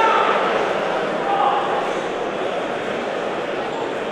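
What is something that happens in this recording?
A man speaks quietly up close.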